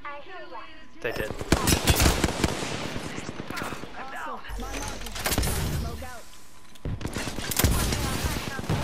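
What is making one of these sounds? Rapid gunfire rattles loudly from a rifle.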